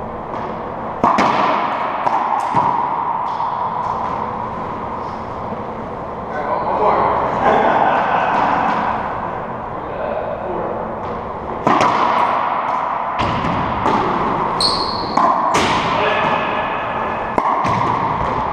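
Rackets strike a ball with sharp cracks.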